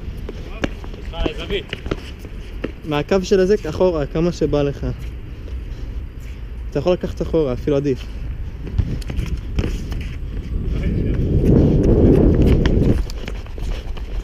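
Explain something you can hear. Sneakers scuff and patter on a hard court.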